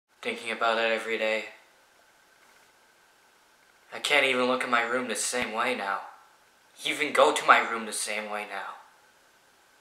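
A young man speaks calmly close to the microphone.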